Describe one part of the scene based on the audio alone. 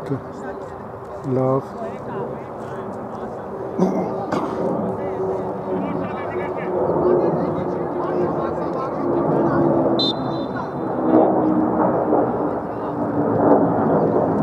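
Men shout to each other across an open field, heard from a distance.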